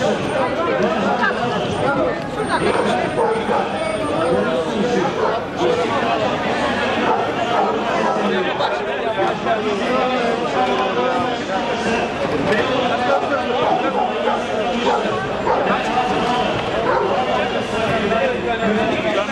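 A crowd of men and women shouts and chants loudly outdoors.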